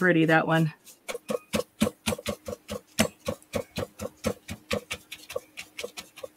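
A brush dabs paint onto paper with quick soft taps.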